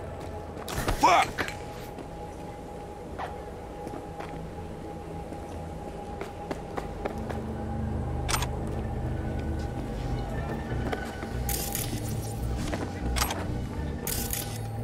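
Footsteps tap on a hard floor at a walking pace.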